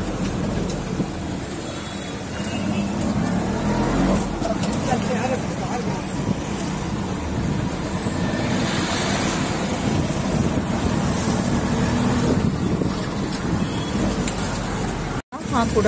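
An auto rickshaw engine rumbles steadily close by.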